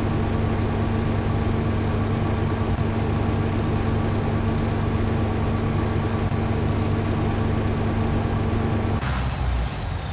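A heavy diesel engine rumbles steadily, then stops.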